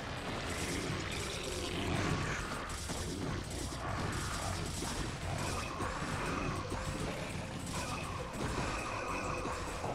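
Video game battle sounds clash and crackle.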